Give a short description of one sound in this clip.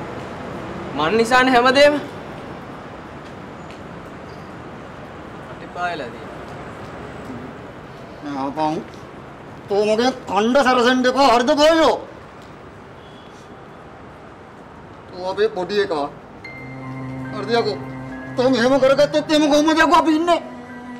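A young man speaks tensely up close.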